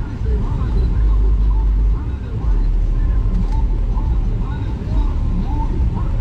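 A car engine idles nearby with a deep, steady rumble.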